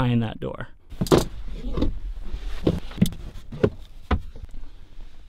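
Items knock and rustle in a cramped space.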